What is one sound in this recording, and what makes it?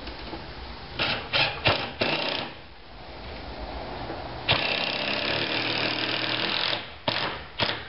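A cordless drill whirs as it bores into wood.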